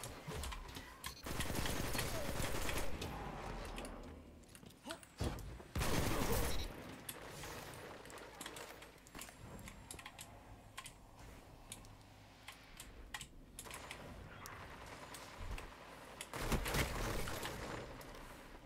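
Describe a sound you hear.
Gunfire from a game rifle cracks in sharp bursts.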